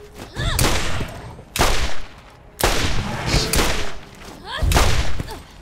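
A creature screeches in pain.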